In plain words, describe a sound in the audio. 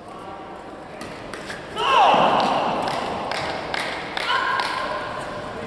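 Shuttlecock hits from rackets pop sharply in a large echoing hall.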